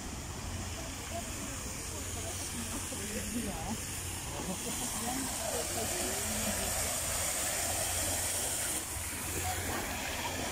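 Men and women chat nearby as they walk past.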